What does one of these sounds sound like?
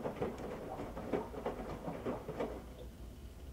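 Water sloshes and splashes inside a turning washing machine drum.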